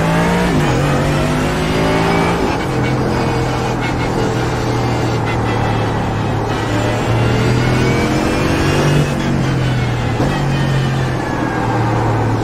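A racing car engine roars steadily, rising and falling in pitch as it shifts gears.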